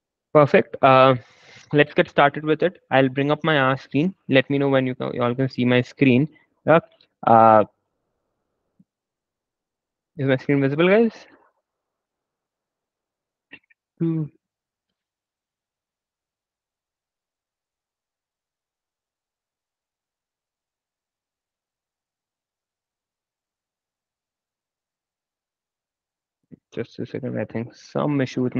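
A young man speaks calmly into a headset microphone, heard as over an online call.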